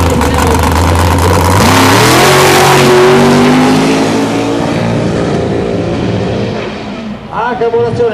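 A drag racing engine roars loudly, then revs up and speeds away into the distance.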